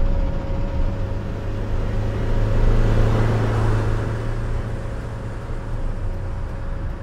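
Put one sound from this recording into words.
A bus engine roars louder as it pulls away.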